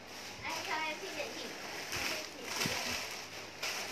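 Clothing rustles as a young woman shakes out a garment.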